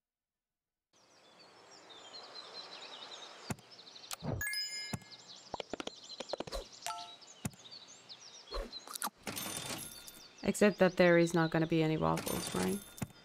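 Short game chimes and clicks sound now and then.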